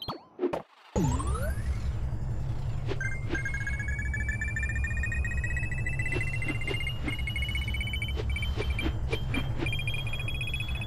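A jetpack roars as a game character flies.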